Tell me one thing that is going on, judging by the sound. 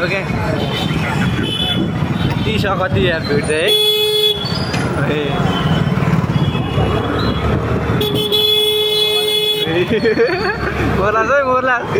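Motorcycle engines rumble close by on a busy street.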